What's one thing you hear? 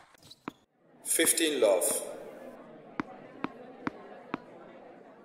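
A crowd claps and cheers, then murmurs.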